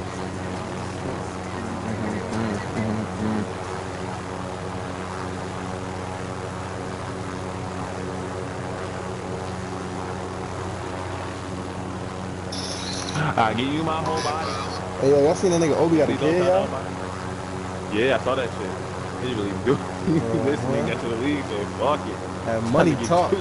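A helicopter engine hums and its rotor whirs steadily.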